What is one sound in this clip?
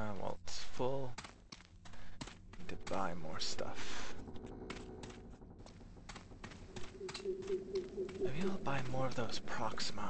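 Footsteps pad over soft ground.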